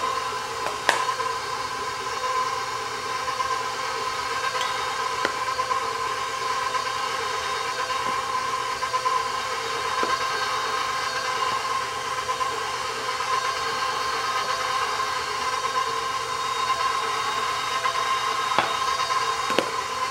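A beater clinks against a metal bowl.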